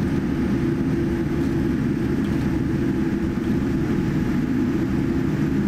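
Aircraft wheels rumble over the runway.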